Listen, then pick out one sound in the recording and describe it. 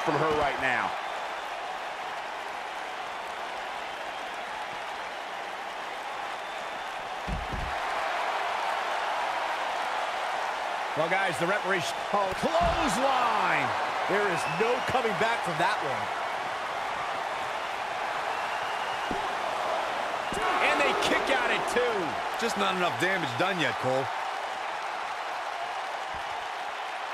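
A large crowd roars and cheers steadily in a big echoing arena.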